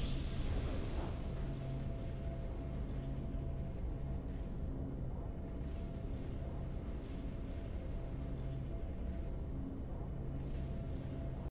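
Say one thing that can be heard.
Soft, triumphant music swells and plays on steadily.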